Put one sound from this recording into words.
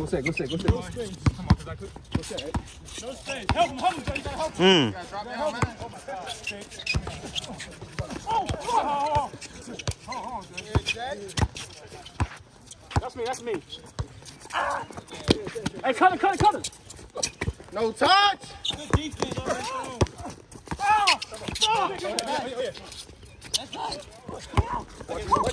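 A basketball bounces on hard pavement outdoors.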